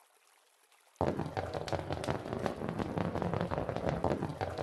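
A rush of many small balls rolls and rattles down a chute.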